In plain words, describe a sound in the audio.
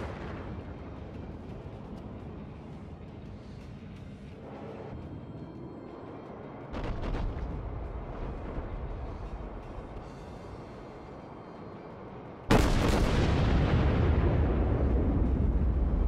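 A warship's engines rumble low and steady as it moves through the sea.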